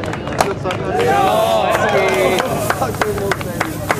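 Champagne sprays from a shaken bottle with a fizzing hiss.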